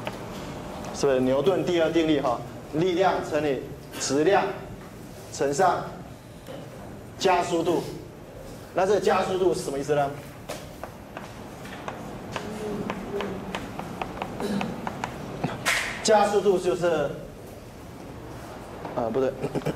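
A man lectures with animation, heard through a microphone.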